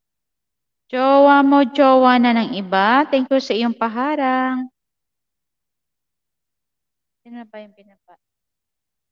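A young woman sings close to a microphone, holding long notes.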